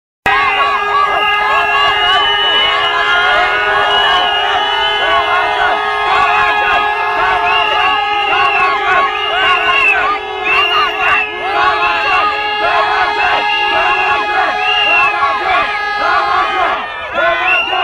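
A large crowd of men and women chants loudly in unison outdoors.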